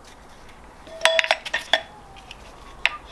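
Metal engine parts clink lightly as a hand handles them.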